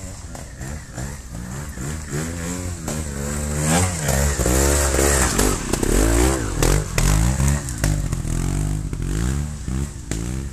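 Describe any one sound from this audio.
A motorcycle engine revs and sputters up close.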